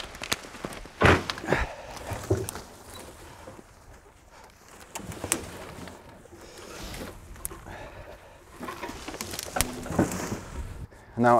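Leafy branches crash and crackle as they are thrown onto a metal trailer.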